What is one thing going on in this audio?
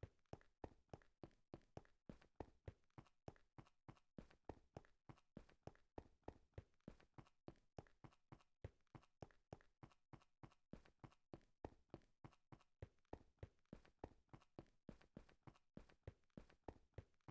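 Footsteps crunch steadily on stone at a quick walking pace.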